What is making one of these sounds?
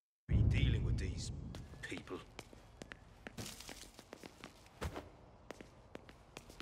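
Footsteps thud across a wooden floor indoors.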